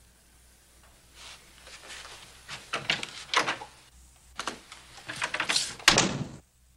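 Footsteps walk away across a floor.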